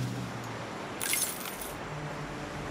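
A short game chime rings as a notice pops up.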